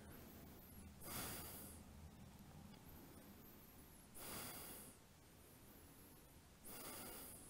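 A man breathes out slowly and audibly.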